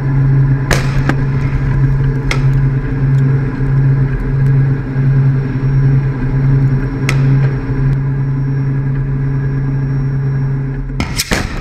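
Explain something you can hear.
Gunshots crack sharply now and then.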